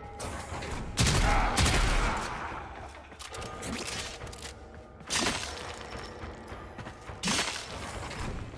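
A blade swings and strikes with sharp whooshing hits.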